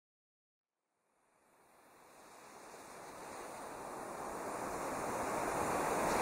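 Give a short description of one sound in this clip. Waves wash onto a shore, fading in and growing louder.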